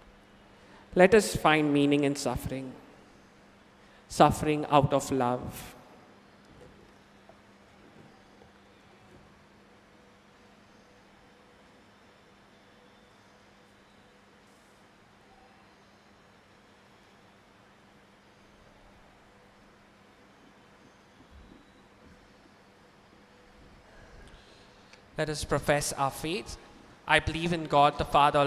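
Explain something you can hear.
A young man chants into a microphone in a reverberant hall.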